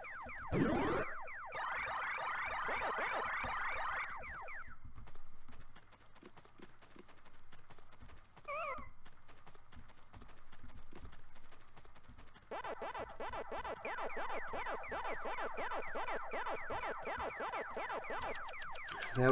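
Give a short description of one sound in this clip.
Quick, rhythmic electronic chomping blips play from a video game.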